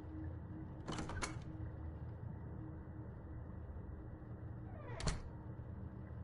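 A door clicks and swings open.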